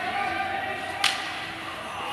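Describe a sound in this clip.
A hockey stick smacks a puck with a sharp crack.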